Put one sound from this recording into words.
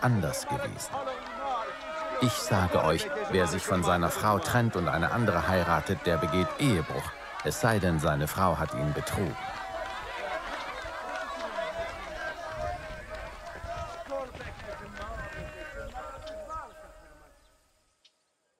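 A crowd of people cheers and shouts, then fades away.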